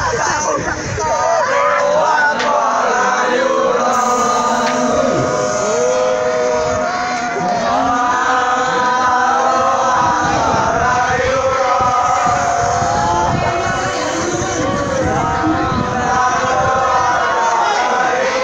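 A group of teenage boys chants a song together.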